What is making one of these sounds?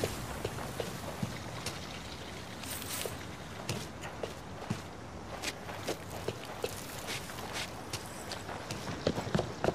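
Footsteps run quickly over hard paving.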